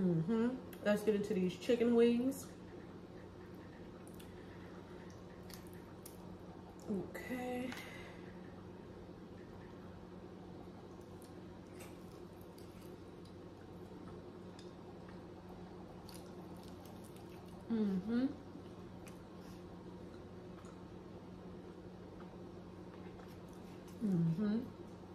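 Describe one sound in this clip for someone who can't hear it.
A young woman chews food with soft crunching sounds.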